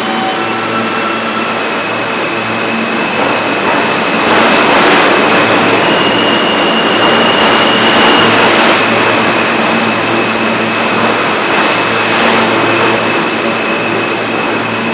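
Train wheels screech on the rails.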